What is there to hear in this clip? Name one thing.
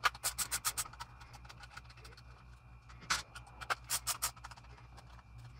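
A ratcheting screwdriver clicks rapidly as screws are turned.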